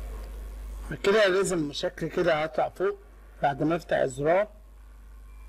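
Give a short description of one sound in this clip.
A man speaks loudly and with animation, close to a microphone.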